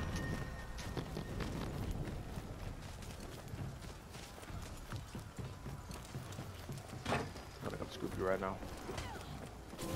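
Footsteps run over wooden planks and rubble.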